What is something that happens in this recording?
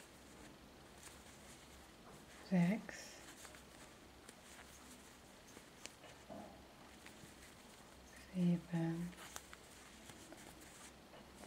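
A crochet hook softly clicks and pulls yarn through loops.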